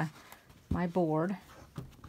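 A plastic ruler slides and taps on a cutting mat.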